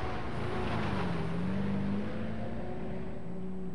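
A heavy truck engine roars as the vehicle drives along a gravel road.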